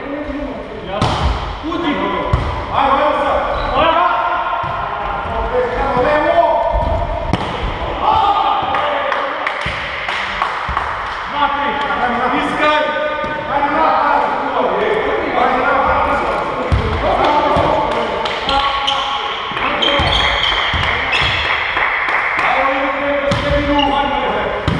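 A volleyball is struck by hands with sharp slaps in a large echoing hall.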